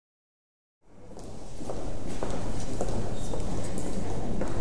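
A crowd of people murmurs in a room.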